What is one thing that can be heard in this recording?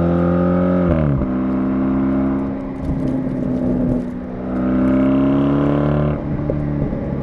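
A car engine revs and roars as the car drives along.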